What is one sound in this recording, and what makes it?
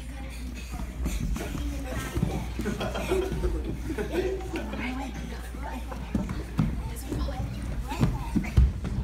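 Children shout and laugh excitedly nearby.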